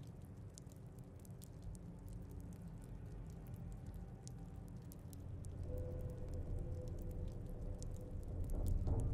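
Soft menu clicks tick quickly as options are scrolled through.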